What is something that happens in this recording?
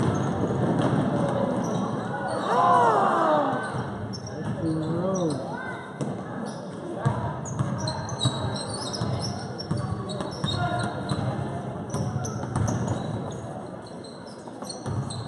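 Sneakers squeak sharply on a hard court floor in a large echoing gym.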